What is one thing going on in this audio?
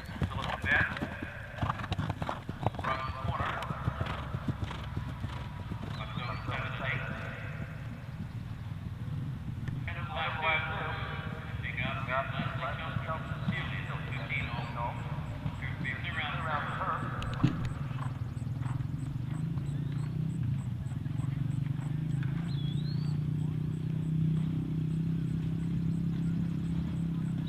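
A horse gallops over soft grass with dull thudding hoofbeats.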